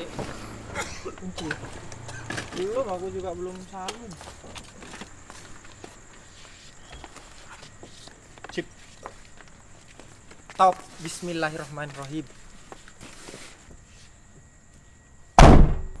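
Bags and cases thump and knock as they are loaded into a car.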